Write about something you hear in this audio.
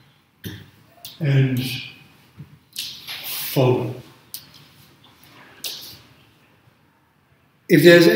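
An older man speaks calmly and clearly nearby, with pauses.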